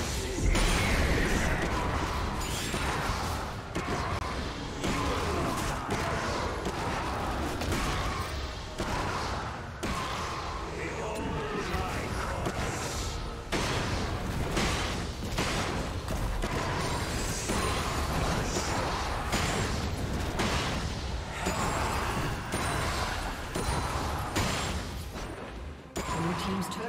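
Fighting game characters clash with bursts of magical blasts and hits.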